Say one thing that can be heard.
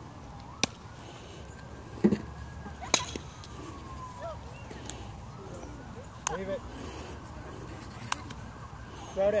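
Young players shout and call out to each other across an open field in the distance.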